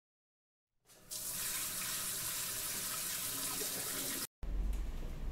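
A shower sprays and splashes water steadily.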